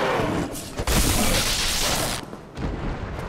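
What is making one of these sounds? A winged creature shrieks and flaps loudly.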